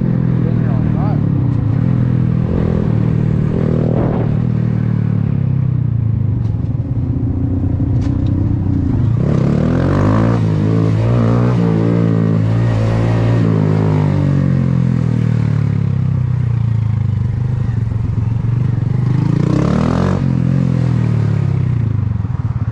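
A motorcycle engine hums steadily and revs up and down.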